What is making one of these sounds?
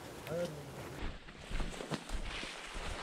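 Brush rustles as someone pushes through bushes.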